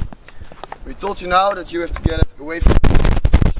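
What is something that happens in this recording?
A man speaks calmly outdoors, close by.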